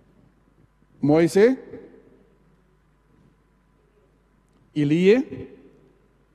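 A middle-aged man speaks emphatically into a microphone in short bursts.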